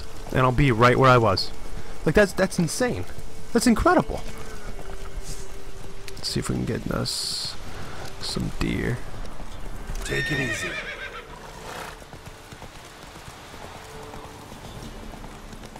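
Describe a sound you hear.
Horse hooves pound steadily on a dirt path at a gallop.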